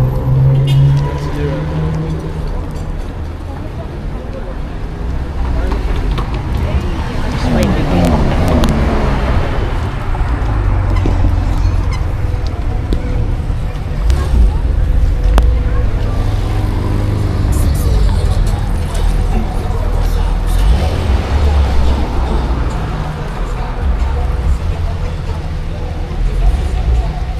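City traffic hums and passes nearby.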